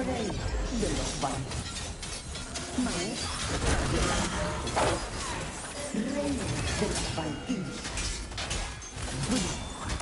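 Flames whoosh in bursts.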